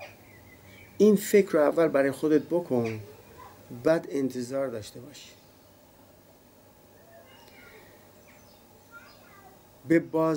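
A middle-aged man speaks calmly and close to a small microphone.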